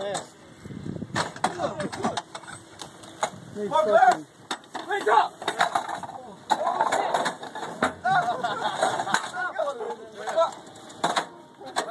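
Several men shout and call out to one another outdoors.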